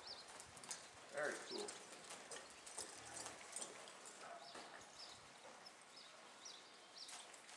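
Horse hooves thud softly on loose dirt.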